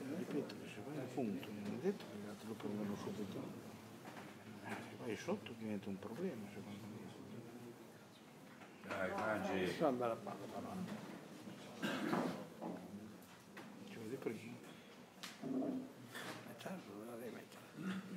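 Men talk nearby in a room with a slight echo.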